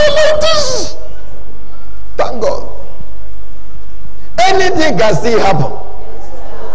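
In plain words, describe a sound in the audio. A man speaks loudly and with animation into a microphone in a large echoing hall.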